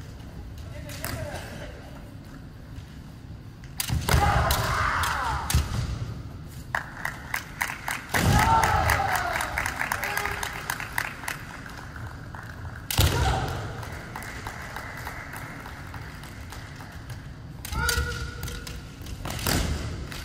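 Kendo fighters shout loudly in a large echoing hall.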